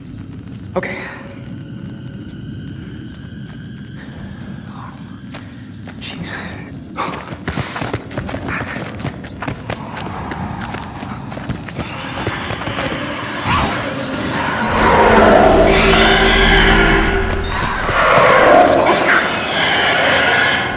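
A young man speaks in a tense, hushed voice.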